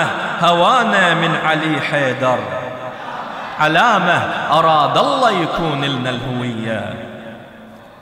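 A man recites expressively into a microphone, heard through a loudspeaker in an echoing room.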